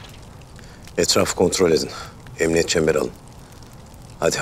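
A bearded man speaks in a low voice.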